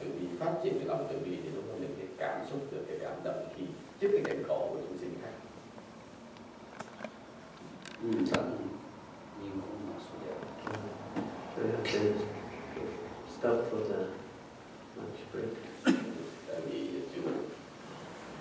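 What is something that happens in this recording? A man speaks calmly into a microphone, heard through a loudspeaker in an echoing hall.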